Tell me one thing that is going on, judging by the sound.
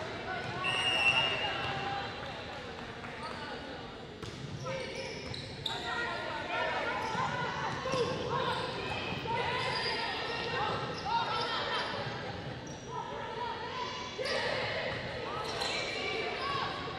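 Young women players call out and shout to each other.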